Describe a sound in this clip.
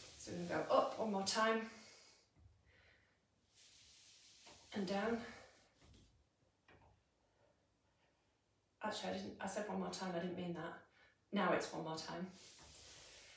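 A woman speaks calmly and clearly nearby, pausing between phrases.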